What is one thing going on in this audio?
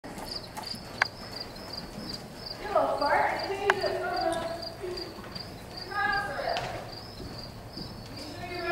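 A horse's hooves thud softly on loose dirt.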